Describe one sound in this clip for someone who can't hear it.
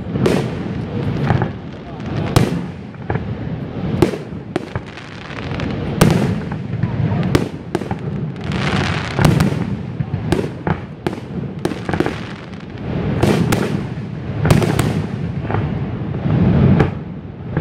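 Fireworks shells burst with sharp booms.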